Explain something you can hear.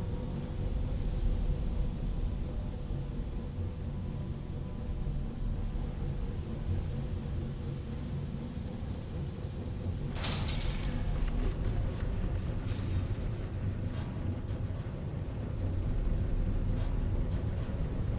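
Footsteps tread on stone floors.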